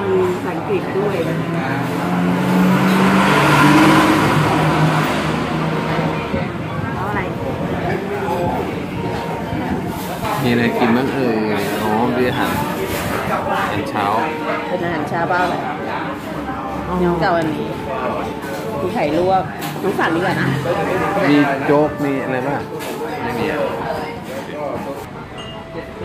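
People chatter quietly in the background.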